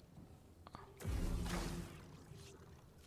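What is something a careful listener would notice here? A lightsaber ignites with a low hum.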